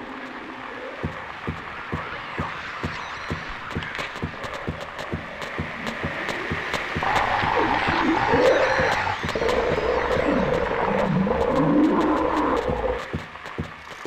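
Footsteps thud quickly along a hard floor.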